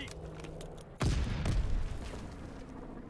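An explosion booms loudly nearby.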